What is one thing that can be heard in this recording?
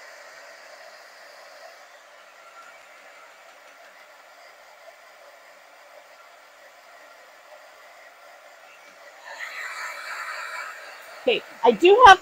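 A heat gun blows with a steady, soft whir.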